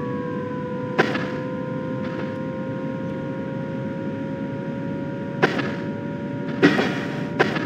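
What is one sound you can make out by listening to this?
Wheels clack over rail joints a few times.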